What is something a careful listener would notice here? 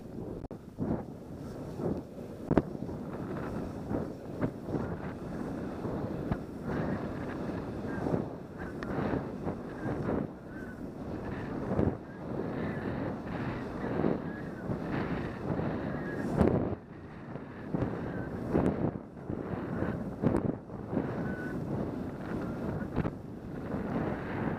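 Skis hiss and swish through deep powder snow.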